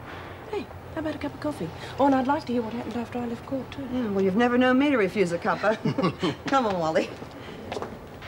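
A woman speaks firmly and close by.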